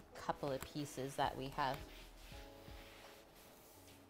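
A cloth wipes across a wooden board.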